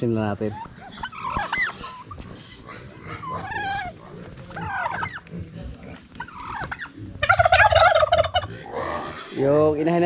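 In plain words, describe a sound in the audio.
Turkeys gobble and call close by.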